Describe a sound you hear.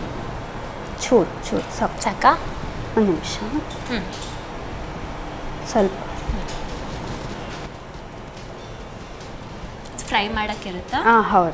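A woman speaks calmly through a clip-on microphone.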